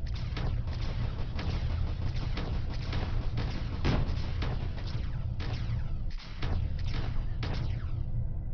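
Laser cannons fire in quick, regular bursts.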